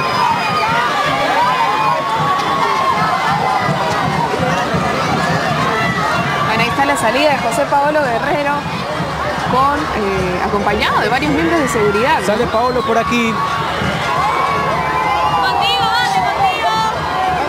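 A large crowd cheers and shouts loudly nearby.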